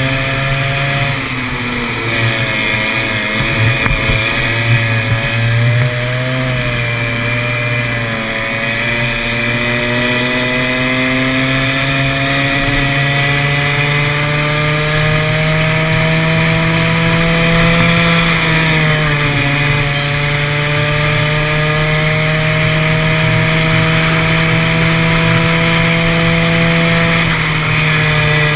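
A kart engine roars close by, its pitch rising and falling with the throttle.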